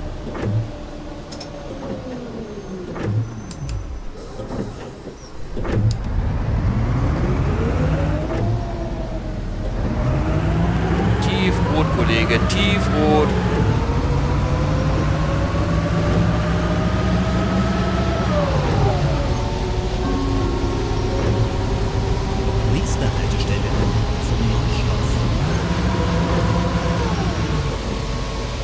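A bus engine hums and rises in pitch as it speeds up, shifting gears again and again.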